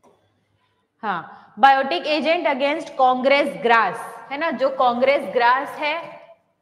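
A young woman speaks clearly into a close microphone, like a teacher explaining.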